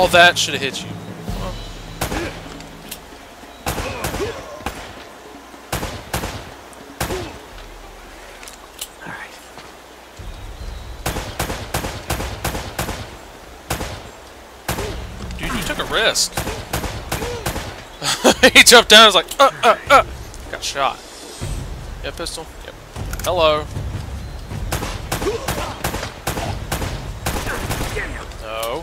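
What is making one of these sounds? Pistol shots ring out in quick bursts.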